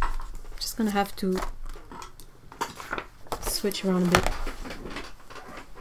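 A sheet of paper rustles as it is laid down.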